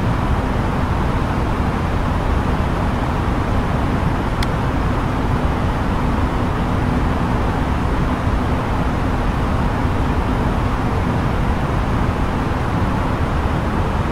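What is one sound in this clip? A steady roar of airflow fills an airliner cockpit in cruise flight.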